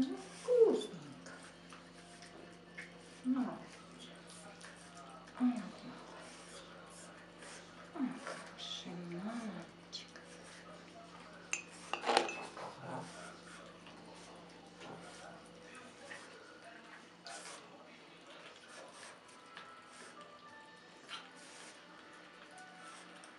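A puppy licks and smacks at a treat.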